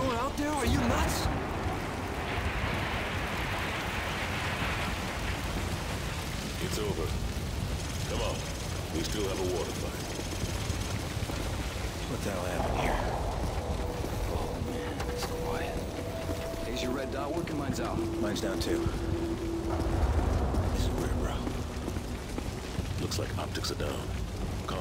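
Flames crackle and roar nearby.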